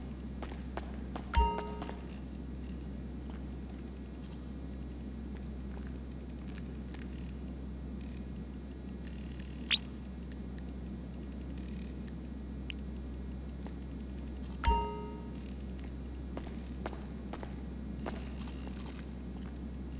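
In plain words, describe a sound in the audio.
Footsteps fall on a concrete floor.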